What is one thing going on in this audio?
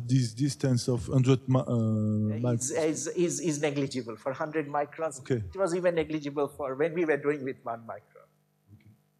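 A man speaks through a microphone.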